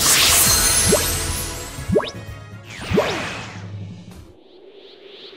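A bright game fanfare plays.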